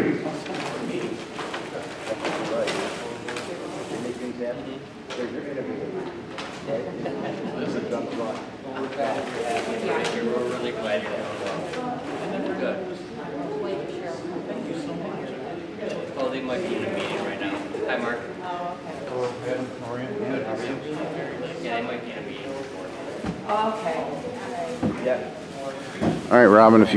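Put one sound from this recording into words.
A man speaks steadily in a large echoing hall.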